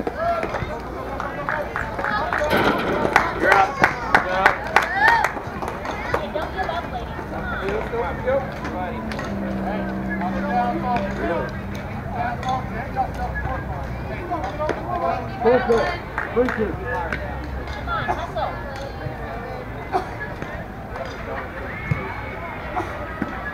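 Young women call out and cheer across an open field.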